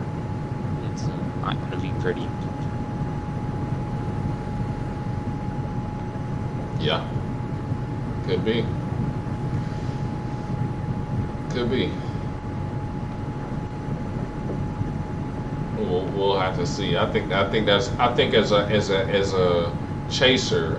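A young man talks casually into a close microphone, with long pauses.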